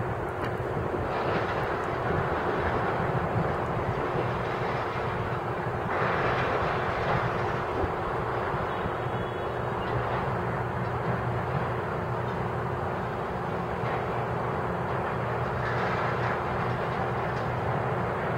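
Scrap metal clatters as a grapple drops and grabs it.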